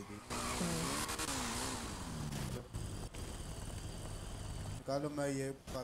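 A motorcycle engine hums.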